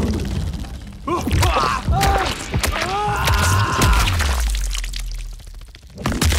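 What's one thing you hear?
Flesh squelches and tears wetly.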